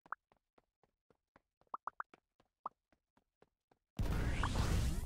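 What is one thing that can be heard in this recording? Short popping game sounds tick rapidly.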